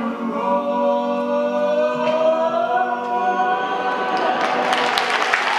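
A woman sings in a large hall.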